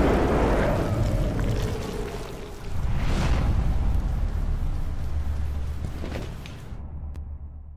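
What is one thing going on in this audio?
Wet, fleshy tendrils squelch and writhe.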